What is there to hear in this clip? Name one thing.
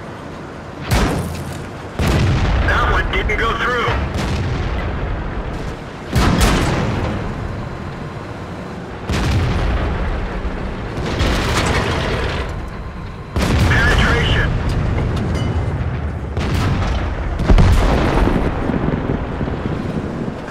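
Heavy cannons fire with loud booming blasts that echo and roll away.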